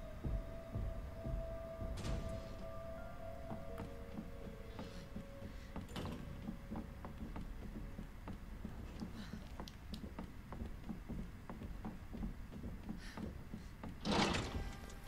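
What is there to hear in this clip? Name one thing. Footsteps thud steadily on a hard floor and stairs.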